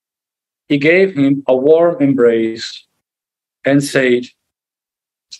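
A man speaks calmly and close, heard through a microphone.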